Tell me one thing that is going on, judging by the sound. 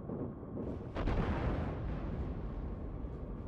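Heavy naval guns fire another booming salvo.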